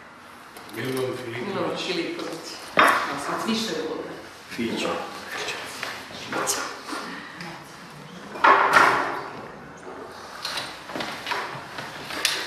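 A cup clinks on a saucer.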